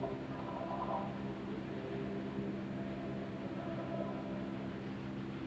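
A choir sings slowly with sustained notes in a large echoing hall.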